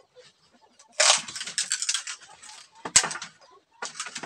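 Bamboo poles clatter against each other.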